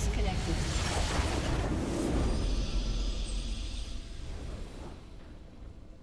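A triumphant fanfare plays as the match ends.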